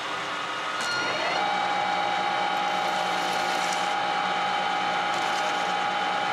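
A metal lathe spins up and runs.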